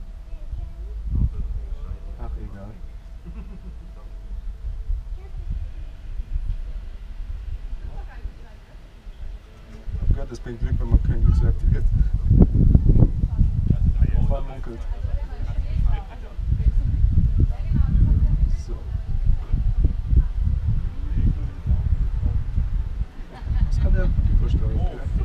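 A man speaks calmly and casually close to a microphone.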